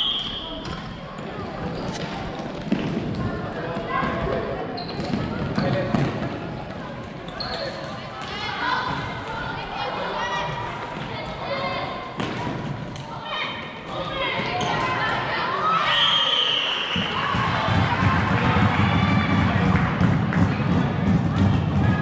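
Sticks clack against a ball and against each other.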